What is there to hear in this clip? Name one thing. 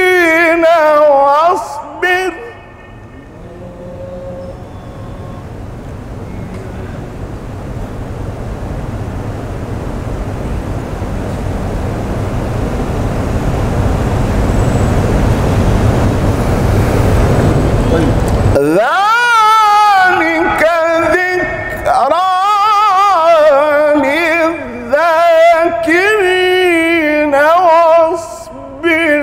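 A man chants loudly and melodically into a microphone.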